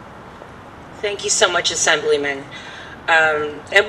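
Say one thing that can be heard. A woman speaks calmly into a microphone, heard through a loudspeaker outdoors.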